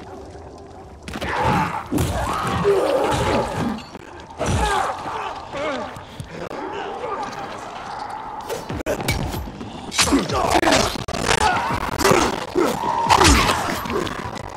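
Heavy blows strike with loud thuds and crunches.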